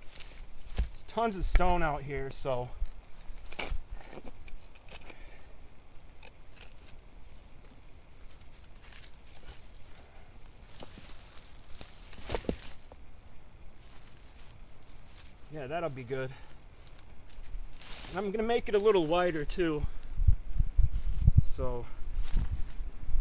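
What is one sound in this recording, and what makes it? A man speaks calmly and close by, outdoors.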